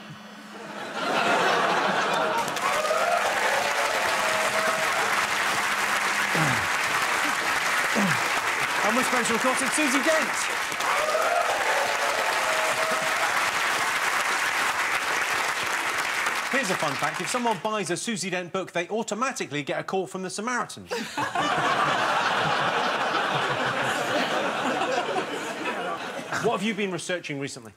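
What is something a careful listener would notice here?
An audience laughs and cheers loudly in a large hall.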